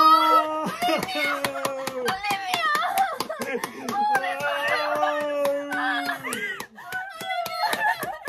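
A young woman sobs and cries out with joy.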